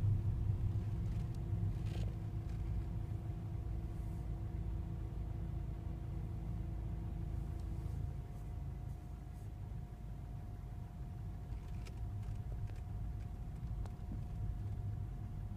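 A car engine hums low and steady as the car drives slowly.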